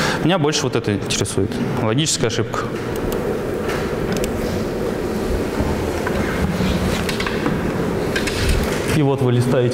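A young man speaks calmly into a microphone in a large echoing room.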